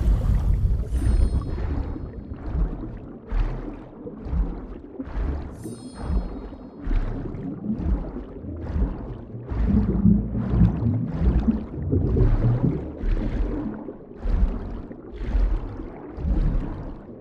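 Water surges in rhythmic bursts as a swimmer strokes underwater.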